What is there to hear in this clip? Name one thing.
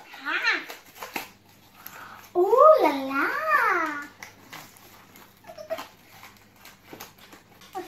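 A cardboard box flap rustles and tears open.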